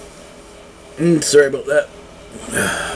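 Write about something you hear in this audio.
A man speaks in a few short phrases close to a microphone.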